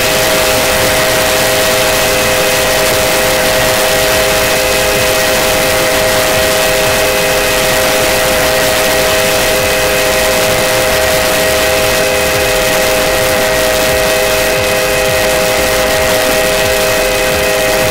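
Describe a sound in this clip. A steam train rumbles steadily along the track.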